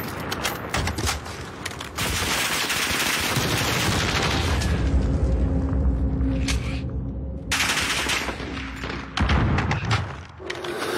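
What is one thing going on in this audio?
Rapid gunshots crack in a video game.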